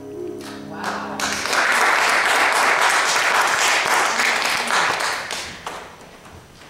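An audience claps its hands.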